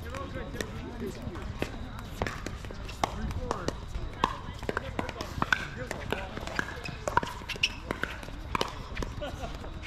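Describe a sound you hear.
Paddles smack a plastic ball back and forth in sharp pops.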